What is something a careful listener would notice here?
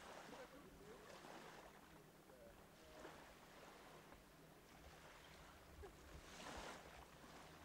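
Water splashes softly around swimmers.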